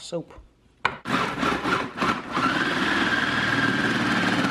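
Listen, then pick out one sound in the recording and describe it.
A food processor whirs loudly and steadily.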